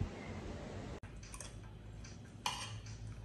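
Cutlery clinks and scrapes against a plate.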